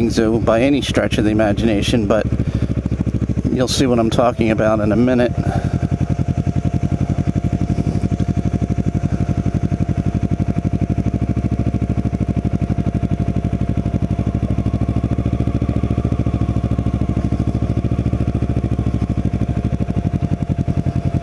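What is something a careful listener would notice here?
A motorcycle engine hums with a low, steady putter.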